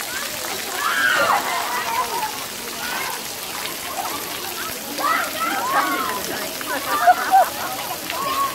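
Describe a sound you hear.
A toddler babbles and squeals nearby.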